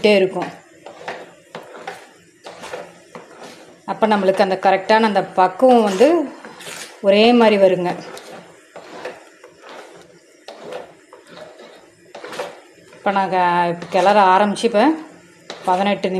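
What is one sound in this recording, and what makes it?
A wooden spatula scrapes and squelches through thick paste in a metal pan.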